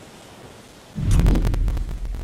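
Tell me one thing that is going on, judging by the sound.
Rapid gunshots crack close by.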